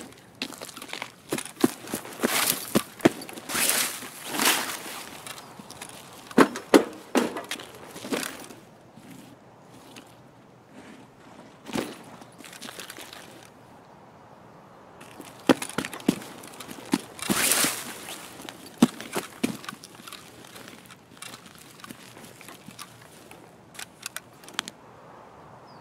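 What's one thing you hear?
Footsteps crunch over grass and gravel.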